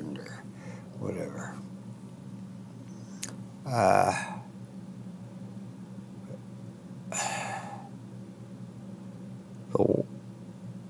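An elderly man speaks in short bursts into a headset microphone, close up.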